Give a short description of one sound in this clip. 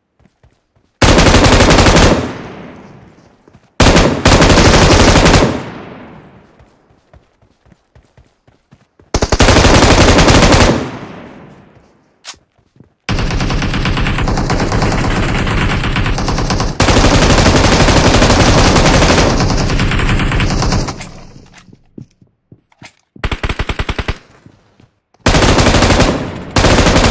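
Rapid bursts of gunfire ring out loudly and echo away.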